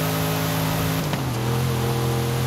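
A car engine shifts gear with a brief dip and rise in pitch.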